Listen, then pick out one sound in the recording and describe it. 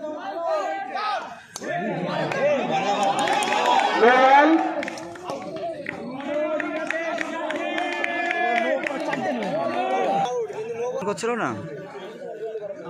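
A crowd of young men shouts and cheers excitedly outdoors.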